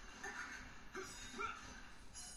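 A sword slashes with a sharp whoosh.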